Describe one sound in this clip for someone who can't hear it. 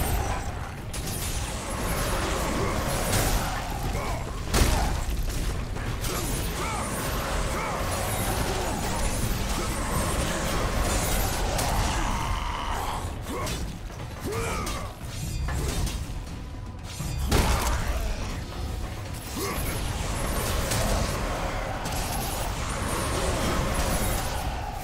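Chained blades whoosh and slash repeatedly in a fast fight.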